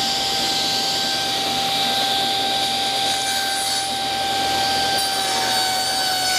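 A saw blade cuts through wood.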